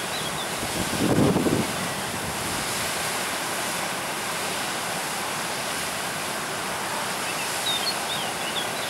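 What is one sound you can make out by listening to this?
A stream rushes and splashes steadily over rocks close by.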